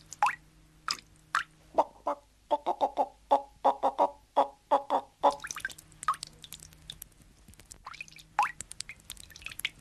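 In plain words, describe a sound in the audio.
Cartoon birds chirp and squawk in quick bursts.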